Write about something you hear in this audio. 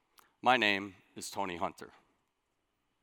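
A middle-aged man speaks through a headset microphone in a large hall.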